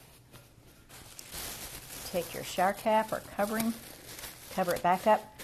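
Plastic wrap crinkles close by.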